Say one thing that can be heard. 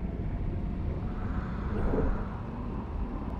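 Bubbles burble and gurgle underwater.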